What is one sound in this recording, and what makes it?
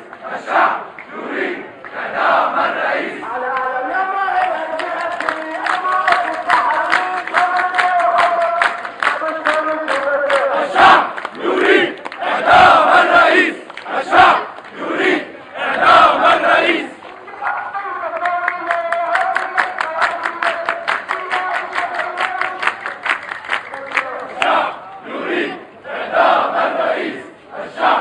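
A crowd of men chants loudly in unison.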